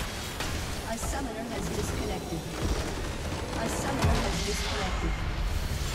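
Game spell effects crash and blast loudly.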